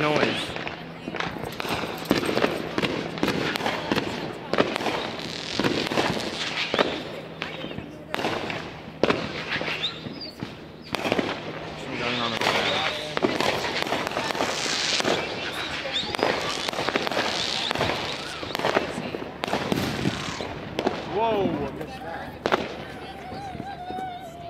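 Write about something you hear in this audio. Fireworks crackle and bang repeatedly outdoors.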